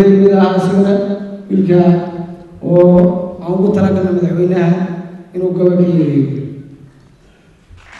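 A young man speaks loudly into a microphone over loudspeakers in a large hall.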